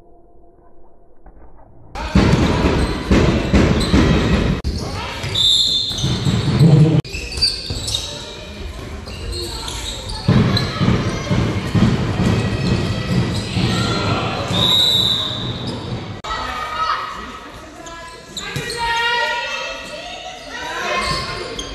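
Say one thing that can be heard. A ball bounces and thuds on the floor.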